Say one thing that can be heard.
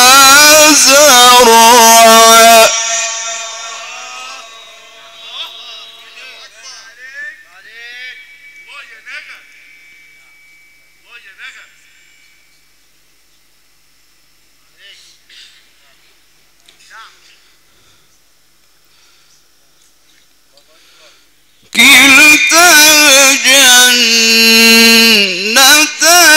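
A man chants loudly and melodically through a microphone and loudspeakers, echoing in a large space.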